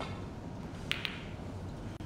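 Snooker balls knock together.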